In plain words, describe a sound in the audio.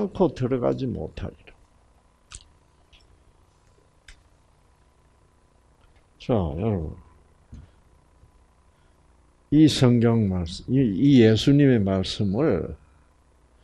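An elderly man speaks calmly in short bursts with pauses.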